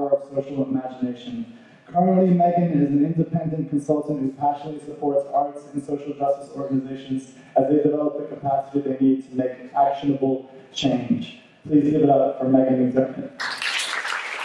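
A man reads aloud through a microphone in a large echoing hall.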